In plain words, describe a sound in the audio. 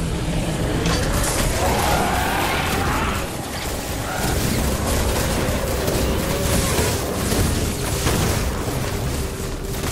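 Game blasts and energy bursts crackle loudly.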